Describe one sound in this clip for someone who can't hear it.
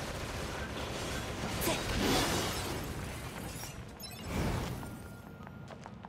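Swords clash and strike in a quick fight.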